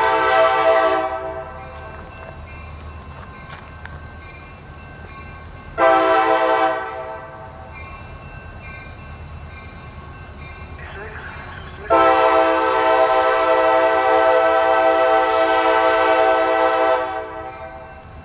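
A train horn blares in long blasts from a distance.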